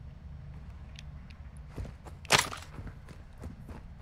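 A wooden crate creaks open.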